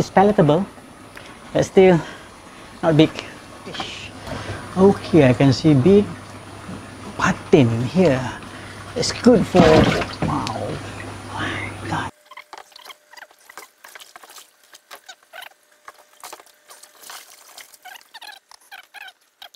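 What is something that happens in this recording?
Water splashes softly.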